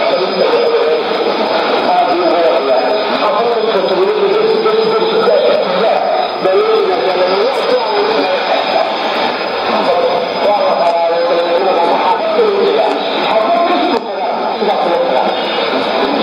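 A radio plays a distant broadcast through its small speaker.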